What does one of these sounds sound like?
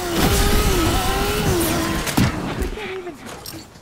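A motorbike engine hums and shifts pitch.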